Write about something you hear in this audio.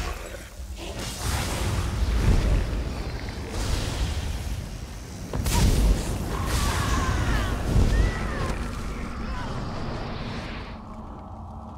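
Magic spells crackle and boom in a fight.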